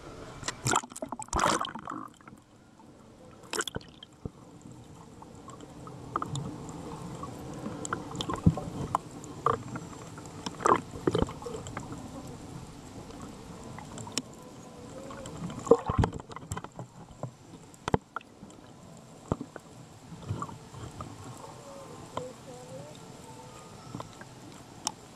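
Water crackles and pops, heard muffled underwater.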